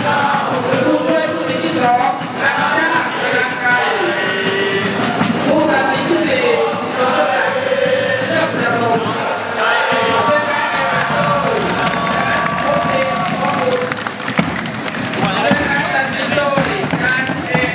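A group of young men sing together loudly outdoors.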